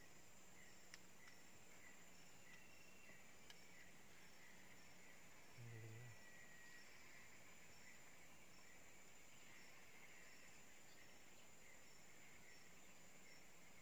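A fishing reel clicks steadily as a line is wound in.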